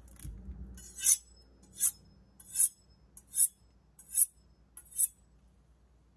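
A knife blade scrapes in quick rings along a honing steel.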